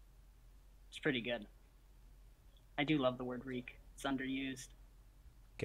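A second man speaks calmly over an online call.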